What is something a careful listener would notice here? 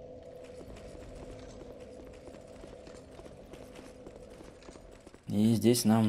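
Footsteps run on stone.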